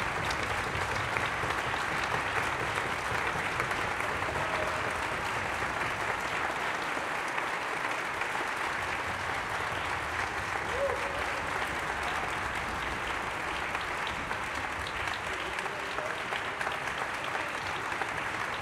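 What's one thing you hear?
An audience applauds loudly and steadily in a large echoing hall.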